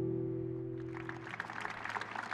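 A guitar chord rings out and fades.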